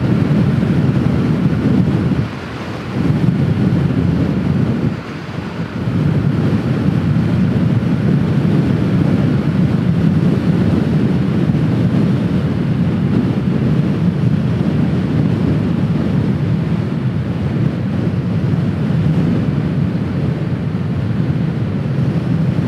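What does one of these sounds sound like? A small scooter engine hums steadily at speed.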